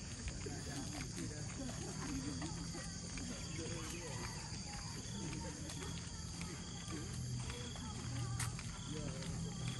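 Footsteps scuff along a paved path.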